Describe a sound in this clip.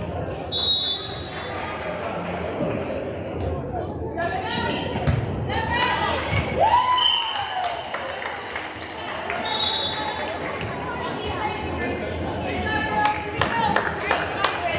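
Young girls chatter and call out in a large echoing hall.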